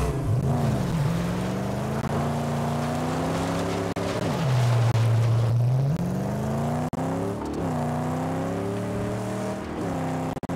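Tyres crunch and skid over loose sand.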